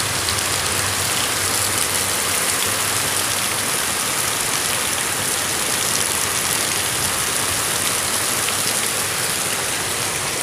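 Rain patters on a metal roof nearby.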